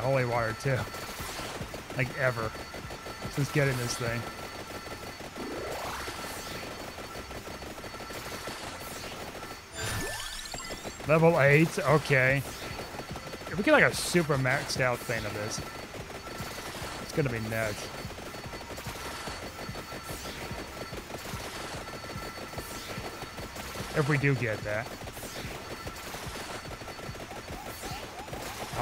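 Retro game sound effects chime and zap rapidly.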